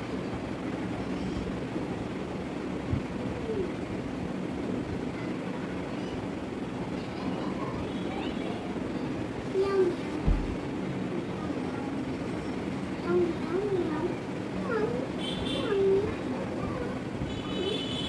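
Hands rustle softly through long hair.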